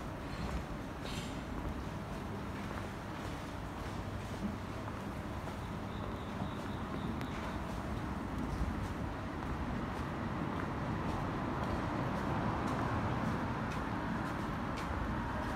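Footsteps walk steadily on paving stones outdoors.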